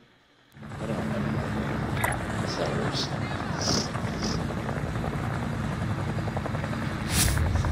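Helicopter rotors thud loudly overhead.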